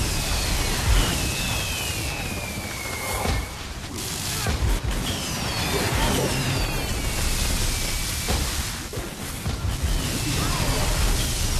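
Magical whooshes sweep down in pitch.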